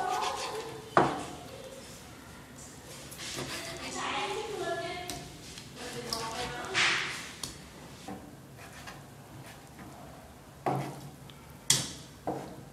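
A knife chops meat on a wooden cutting board.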